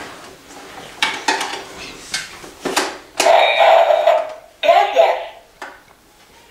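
Plastic toy pieces click and clatter on a table.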